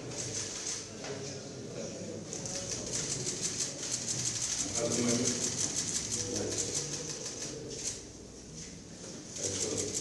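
A small crowd of men and women murmur and talk nearby.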